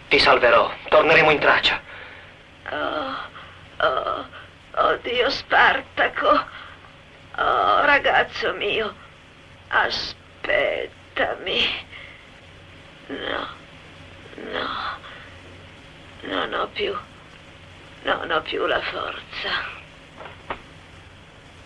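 A man speaks urgently and close by.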